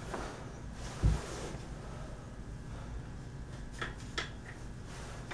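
A wooden bow knocks and clicks as it is handled.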